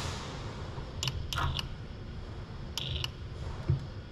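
A robot arm's motors whir in short bursts.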